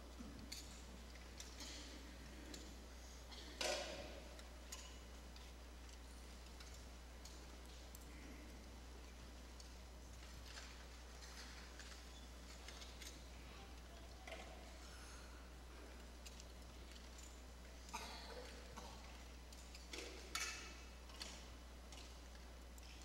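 A large congregation murmurs and shifts quietly in a big hall.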